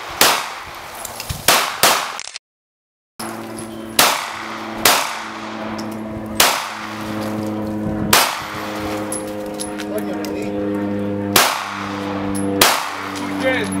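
Pistol shots crack outdoors, one at a time with pauses between them.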